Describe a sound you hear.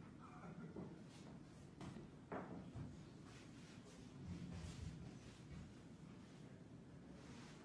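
Hands pat and slap soft dough on a wooden board.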